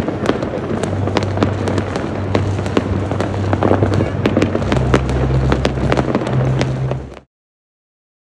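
Fireworks crackle and bang in rapid bursts.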